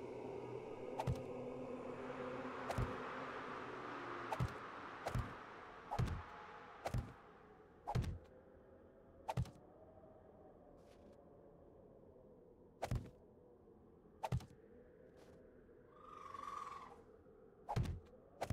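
Heavy blocks thud into place again and again.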